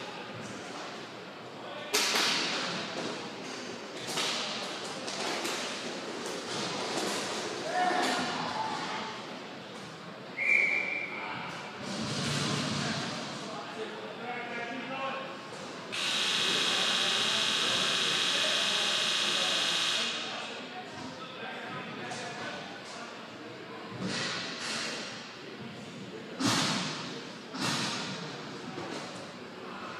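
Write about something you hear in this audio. A crowd murmurs and cheers in a large echoing arena.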